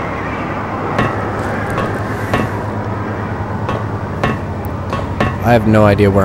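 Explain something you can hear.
Footsteps knock on ladder rungs in a steady climb.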